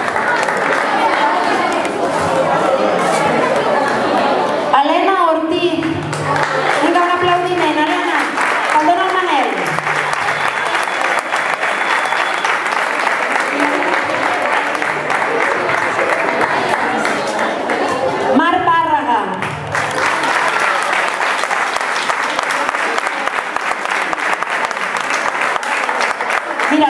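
A crowd claps steadily in an echoing hall.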